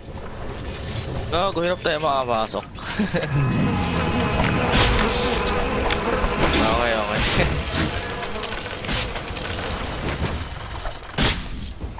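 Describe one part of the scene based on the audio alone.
Magic spells crackle and boom in a fantasy battle.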